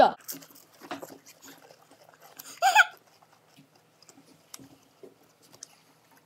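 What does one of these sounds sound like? A teenage boy crunches a cracker.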